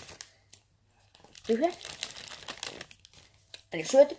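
A sweet wrapper crinkles.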